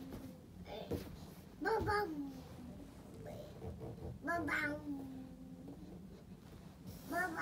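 A television plays a cheerful children's song.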